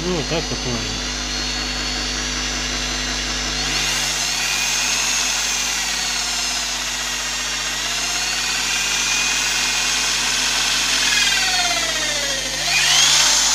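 An electric drill whirs steadily as it bores into wood.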